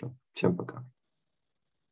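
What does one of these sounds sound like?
A young man speaks briefly through an online call.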